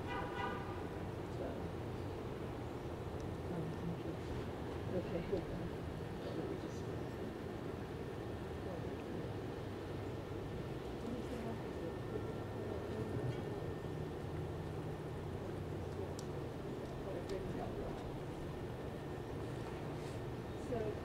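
An elderly woman speaks calmly into a microphone over a loudspeaker, outdoors.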